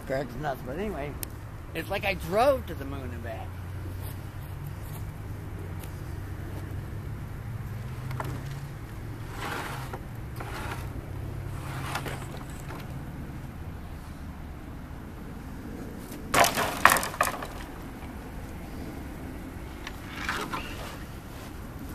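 A wood fire crackles and pops steadily.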